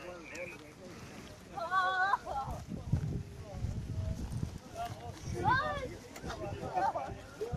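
Several men shout to each other nearby.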